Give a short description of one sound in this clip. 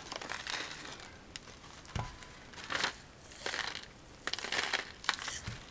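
Small beads rattle and tick as they are poured onto paper.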